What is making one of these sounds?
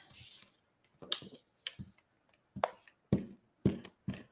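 Card paper rustles and taps on a table.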